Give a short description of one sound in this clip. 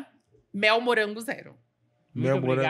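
A woman speaks with animation into a microphone.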